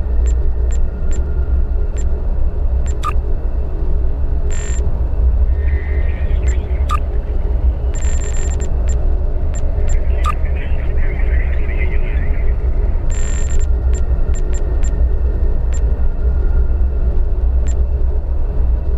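Short interface clicks sound as menu options are picked.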